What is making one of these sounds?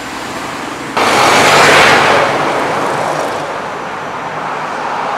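Traffic rushes by on a highway.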